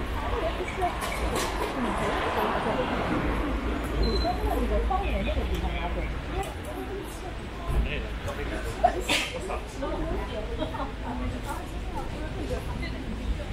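Traffic hums along a city street outdoors.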